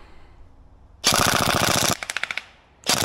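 An airsoft rifle fires a fast burst of shots.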